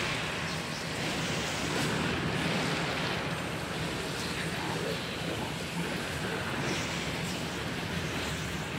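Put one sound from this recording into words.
Game spell effects crash and whoosh during a battle.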